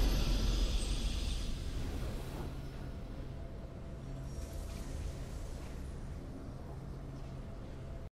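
A triumphant game fanfare rings out with shimmering chimes and slowly fades.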